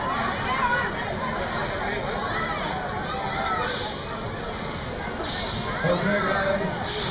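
A crowd of riders screams on a swinging pendulum ride.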